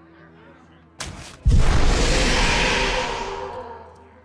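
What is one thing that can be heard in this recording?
A game card lands on the board with a bright magical whoosh.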